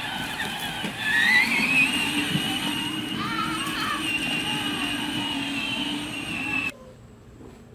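An electric toy car's motor whines as it drives over the ground.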